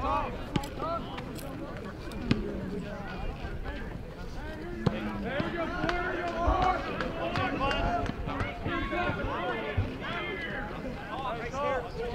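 Several young men chatter and call out nearby outdoors.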